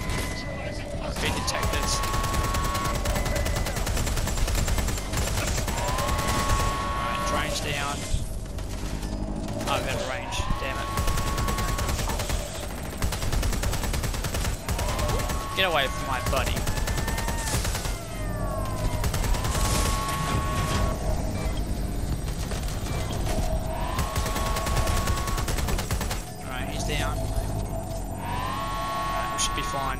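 A drone's rotors whir steadily.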